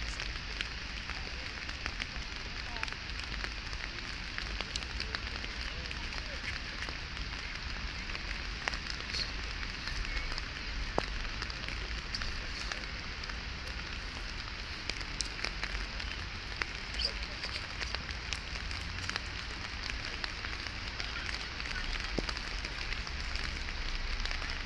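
A swollen river rushes past with a steady roar.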